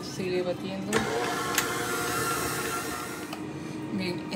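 An electric stand mixer whirs as it beats dough.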